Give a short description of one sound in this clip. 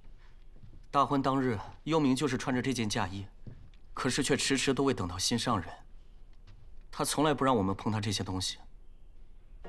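A young woman speaks calmly and sadly.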